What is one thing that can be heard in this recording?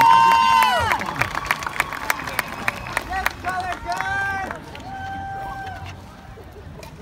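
Mallet percussion plays quick ringing notes.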